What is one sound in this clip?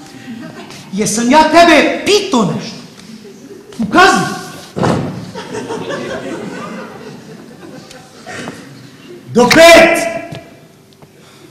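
A man speaks loudly and with emotion in a large hall.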